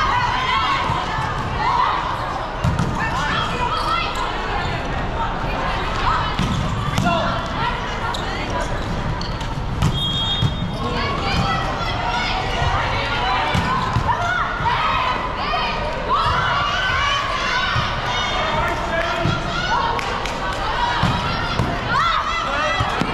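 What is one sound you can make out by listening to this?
A crowd of young players and spectators shouts and chatters, echoing in a large hall.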